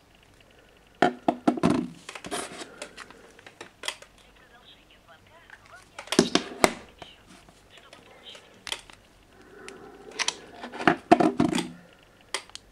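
Phones knock and clatter against a wooden table.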